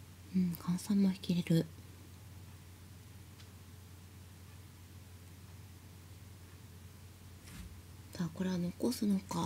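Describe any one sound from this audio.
Game tiles click as they are placed on a table.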